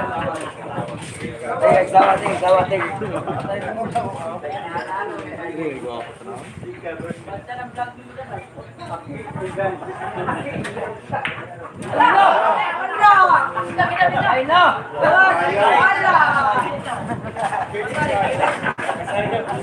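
A crowd of men and women chatters nearby throughout.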